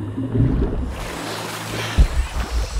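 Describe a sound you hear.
Water splashes as a swimmer surfaces.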